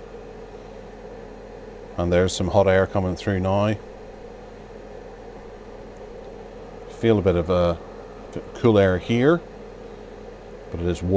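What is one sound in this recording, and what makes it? A space heater's fan hums steadily nearby.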